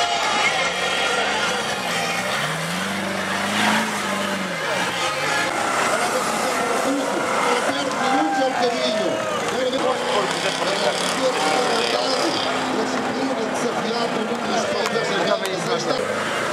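An off-road truck engine revs hard and roars as the truck climbs.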